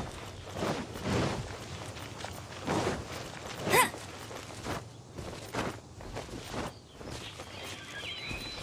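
Footsteps run quickly over grass and dirt.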